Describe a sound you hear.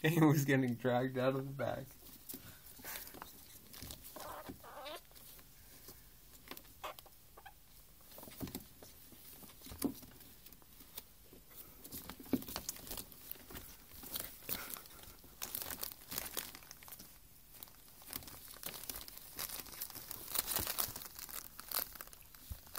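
Paper rustles and crinkles as ferrets tumble in a gift bag.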